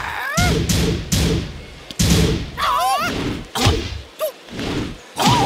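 Heavy punches and kicks land with sharp thuds.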